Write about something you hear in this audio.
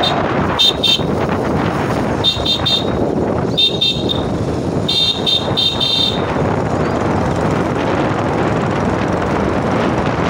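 A vehicle engine rumbles steadily while driving along a busy road.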